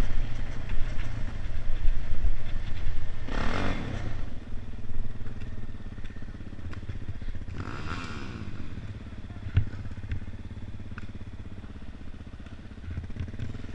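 A dirt bike engine roars and revs close by.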